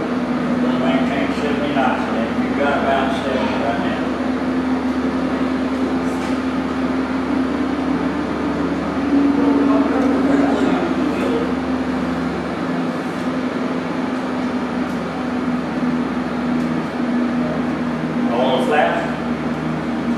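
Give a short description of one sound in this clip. An elderly man talks quietly at a distance.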